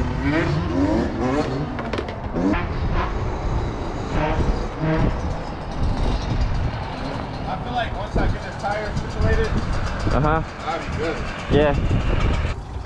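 Wind buffets loudly as the motorcycle rides.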